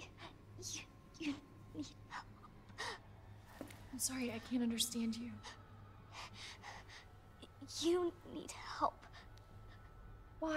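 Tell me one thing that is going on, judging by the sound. A young girl speaks haltingly in a small, frightened voice.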